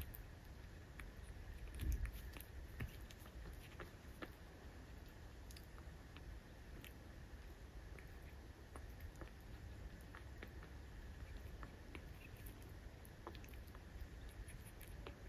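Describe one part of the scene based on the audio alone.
A puppy licks and chews at something with small wet clicks.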